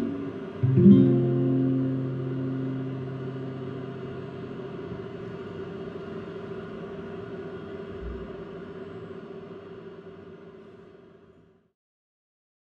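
An acoustic guitar strums a final chord that rings out and slowly fades.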